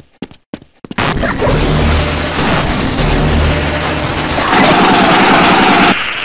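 A machine gun fires rapidly and loudly.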